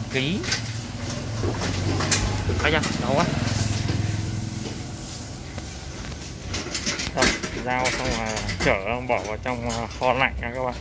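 A loaded cart rolls and rattles over concrete.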